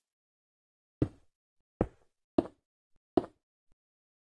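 Stone blocks are placed with dull thuds.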